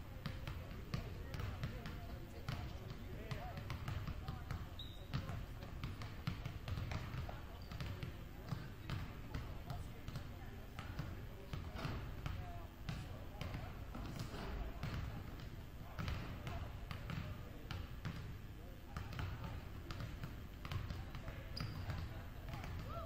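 Basketballs bounce on a hardwood floor, echoing in a large hall.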